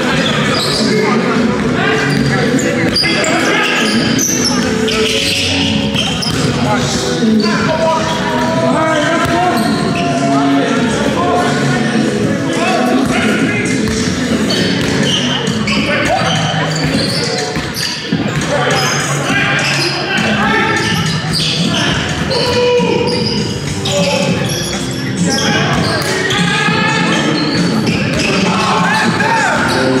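Young men call out to each other across a large echoing hall.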